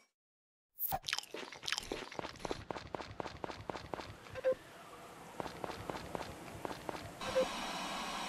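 Footsteps tap quickly across a wooden floor.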